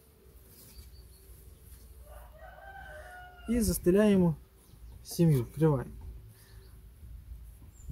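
A wool blanket rustles softly as it is laid down and lifted again.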